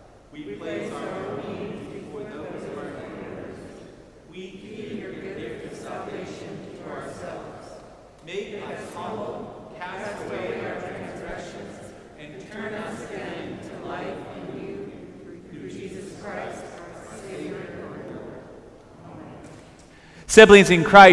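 A man reads a prayer aloud through a microphone in an echoing hall.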